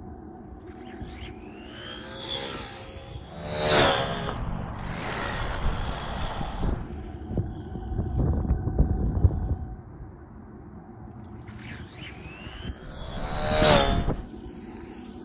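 A small electric motor whines loudly as a remote-control car speeds past.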